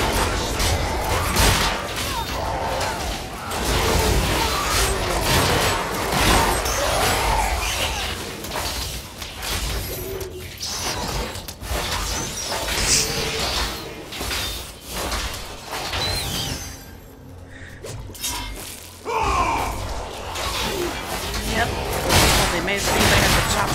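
Magic blasts and hits crackle and boom in a fast-paced fight.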